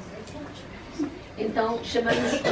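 A woman speaks into a microphone at a lectern.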